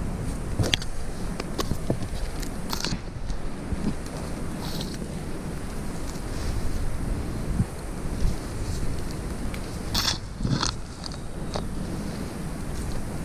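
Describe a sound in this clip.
Leaves rustle as branches brush close by.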